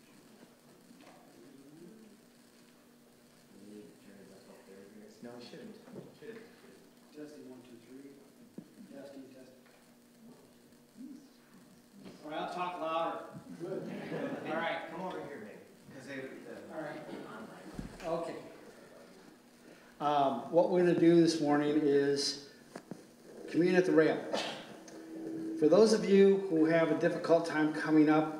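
An elderly man speaks calmly, at first quietly and then louder through a microphone.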